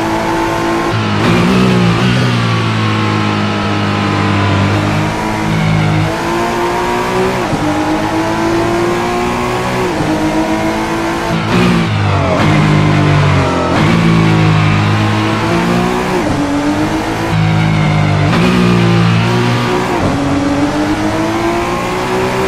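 A racing car engine roars, rising in pitch and dropping at each gear change.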